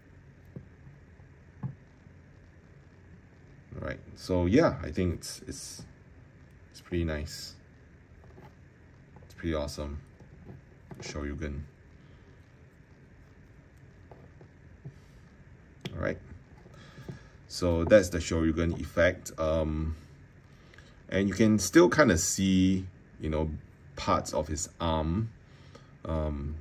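Small plastic parts click softly as a toy figure is handled.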